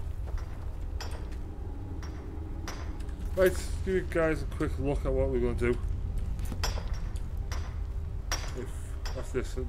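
A pickaxe strikes rock in sharp, repeated knocks.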